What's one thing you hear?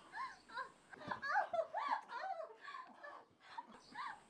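A woman moans softly nearby.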